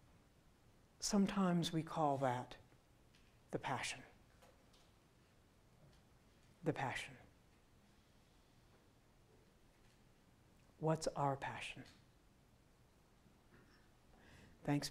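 An elderly man speaks slowly and calmly through a microphone in an echoing hall, pausing between phrases.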